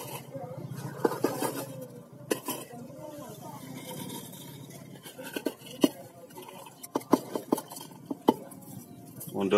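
Cats crunch on dry food up close.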